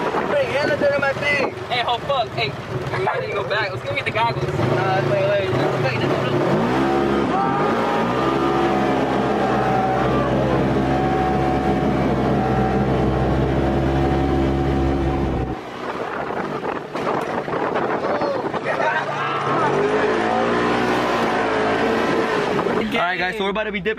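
An off-road vehicle's engine roars as it drives on a dirt track.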